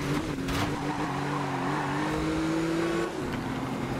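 Tyres screech as a car skids around a bend.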